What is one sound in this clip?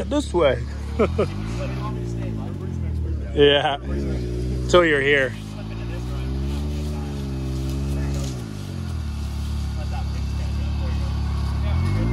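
An off-road vehicle's engine idles and revs up and down.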